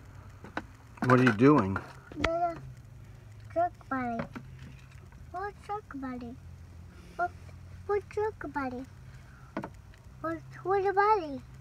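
A young child talks in a high, lively voice close by.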